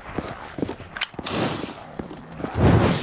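A lighter clicks and flares.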